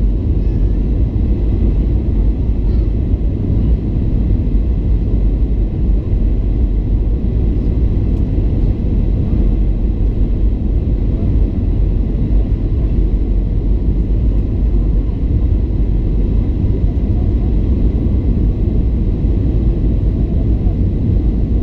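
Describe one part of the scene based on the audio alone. A jet airliner's engines roar steadily, heard from inside the cabin.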